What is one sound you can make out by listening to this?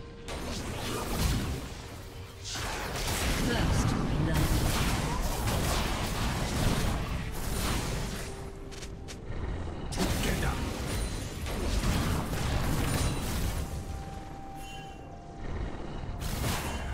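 Magic spell effects whoosh and crackle in bursts.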